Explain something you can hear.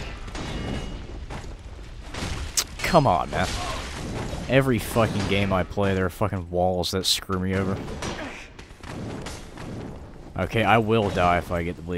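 Swords clash with sharp metallic clangs.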